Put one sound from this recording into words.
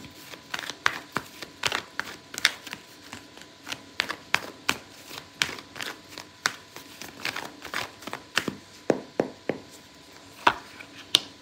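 Playing cards riffle and tap softly as they are shuffled.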